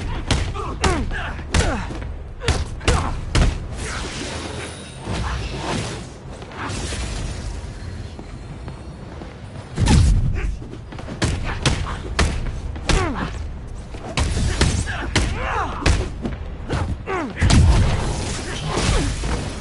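Punches land with heavy thuds and electric crackles.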